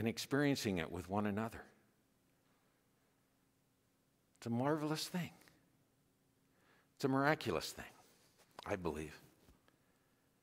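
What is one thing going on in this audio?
A man speaks calmly in short phrases into a microphone in a large echoing room.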